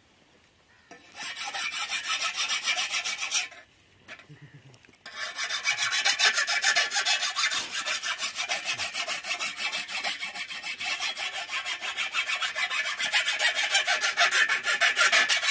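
A sickle blade scrapes rapidly and rhythmically against a sharpening steel.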